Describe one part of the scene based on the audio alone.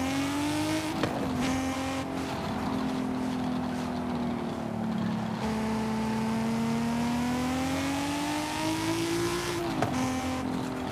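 A gear shift clunks sharply.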